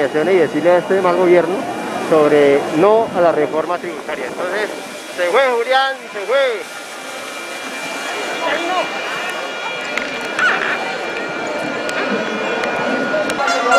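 A drone buzzes overhead as it hovers.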